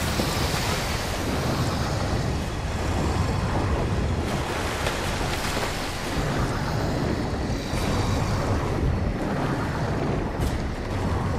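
Water splashes and churns as something wades through it.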